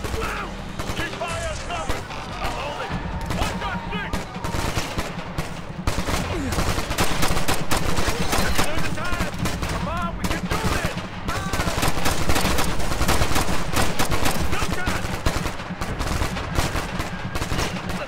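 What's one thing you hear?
Rapid gunfire rattles in bursts close by.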